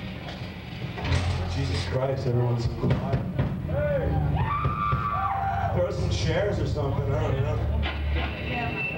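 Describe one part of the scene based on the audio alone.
Electric guitars play loudly and distorted.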